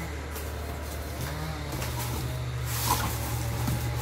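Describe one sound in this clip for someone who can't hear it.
Cardboard flaps rustle and creak as a box is opened.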